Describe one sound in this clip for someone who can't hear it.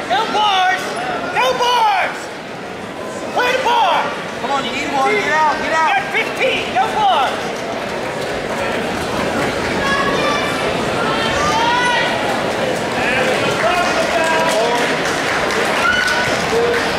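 Spectators shout and yell loudly with excitement.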